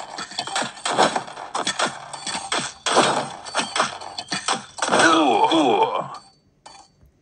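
Swords clash and blows land in a busy cartoon battle.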